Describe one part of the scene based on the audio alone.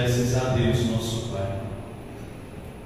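A man chants through a microphone, echoing in a large hall.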